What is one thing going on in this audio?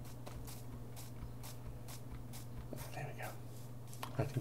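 Footsteps thud softly on grass at an even pace.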